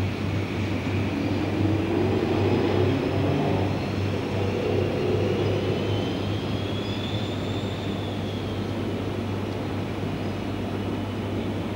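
A train rumbles past over the tracks.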